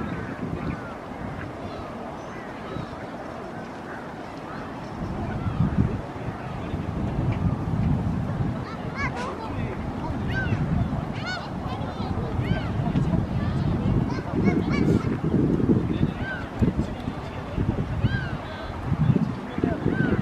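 Wind blows outdoors in low gusts.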